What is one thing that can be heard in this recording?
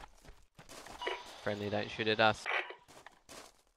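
A rifle attachment clicks and rattles as it is switched.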